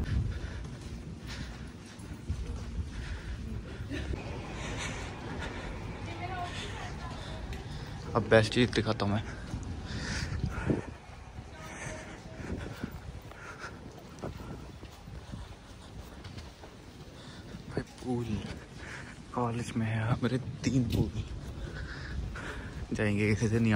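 Footsteps echo in a large hall.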